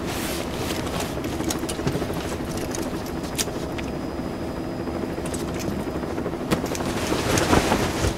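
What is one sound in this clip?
Cloth and leather gear rustle as gloved hands handle it.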